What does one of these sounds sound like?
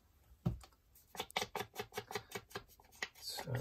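An ink dauber taps repeatedly against paper.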